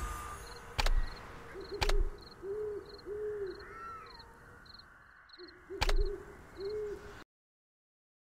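Soft chimes play.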